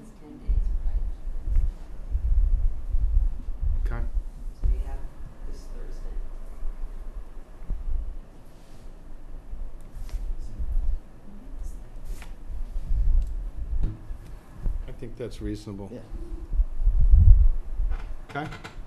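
A man speaks calmly over a microphone in a room with some echo.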